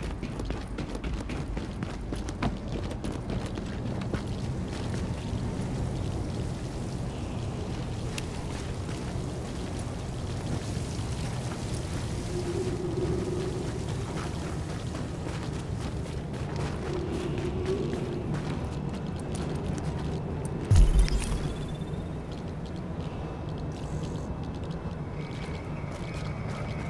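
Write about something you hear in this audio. Footsteps crunch on snow and stone.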